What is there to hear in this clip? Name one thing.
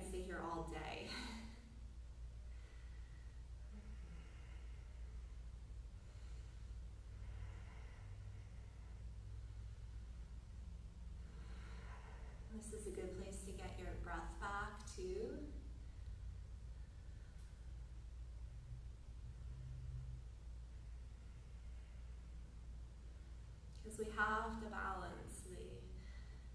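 A woman speaks calmly and softly nearby.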